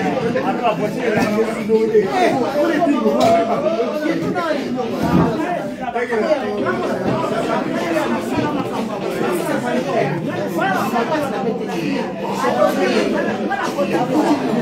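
Several adults talk loudly over one another close by, in a lively room.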